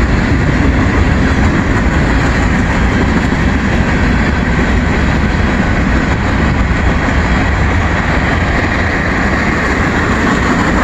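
Freight cars rumble and clatter steadily along a track close by.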